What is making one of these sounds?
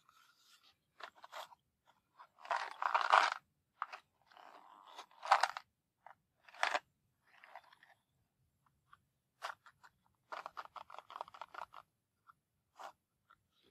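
Matches rattle inside a cardboard box as it is turned over in the hands.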